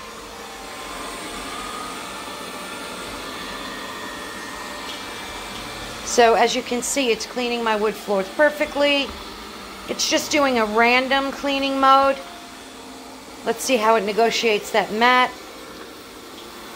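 A robot vacuum hums and whirs steadily as it moves across the floor.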